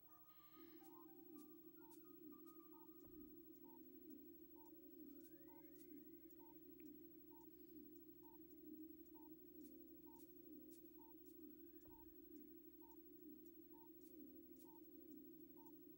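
A video game beeps at a steady, regular pace.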